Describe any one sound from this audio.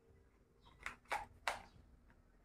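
A battery snaps into a cordless drill.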